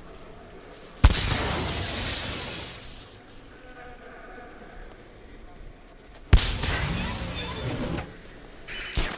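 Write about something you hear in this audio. An electrical charge crackles and bursts with a loud zap.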